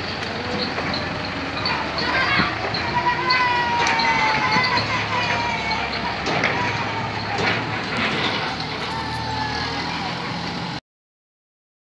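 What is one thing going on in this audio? A trailer rattles and clanks over a dirt road.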